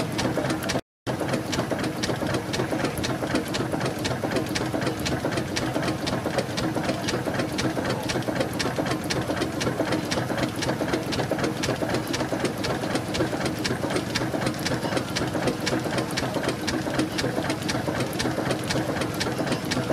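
A steam engine runs steadily, with rapid, even clanking and ticking.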